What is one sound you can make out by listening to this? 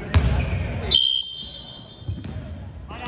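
A referee blows a sharp whistle.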